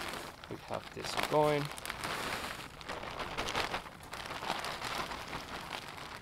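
A paper packet rustles close by.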